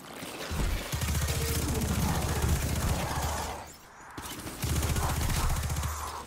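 Energy bolts crackle and explode on impact.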